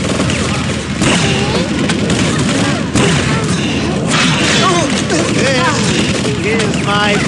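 A weapon fires sharp shots.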